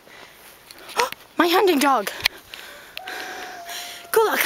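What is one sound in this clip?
A dog yelps excitedly in the open air.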